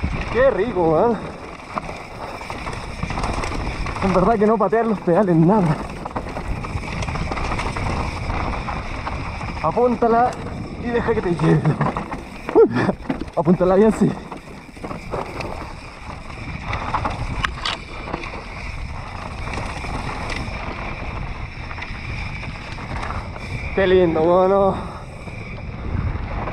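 Bicycle tyres crunch and rumble over rocky gravel.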